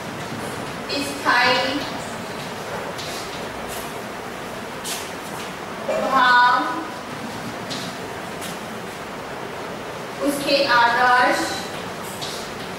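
A woman speaks slowly and clearly in short phrases, close by.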